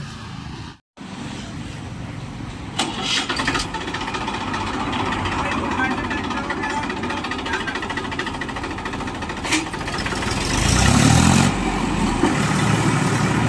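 A tractor engine runs with a steady rumble.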